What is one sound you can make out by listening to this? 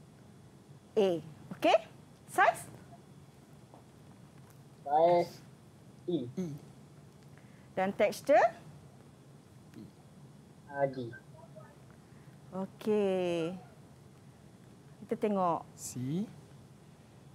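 A teenage boy speaks in short bursts over an online call.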